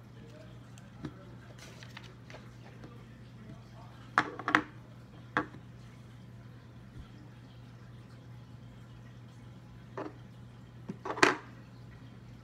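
Small plastic toy pieces click and tap on a table.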